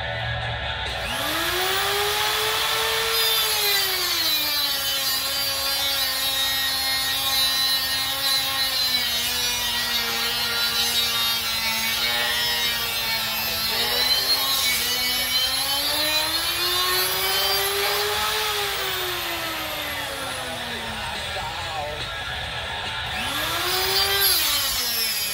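An angle grinder spins up and winds down.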